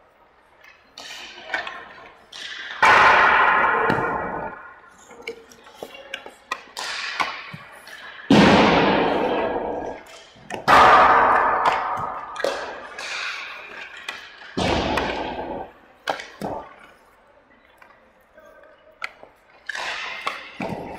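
Skate blades scrape and carve on ice.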